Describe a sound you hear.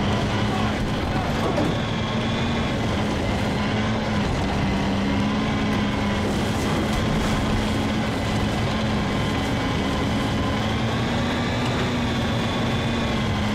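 A tank engine roars steadily as the tank drives.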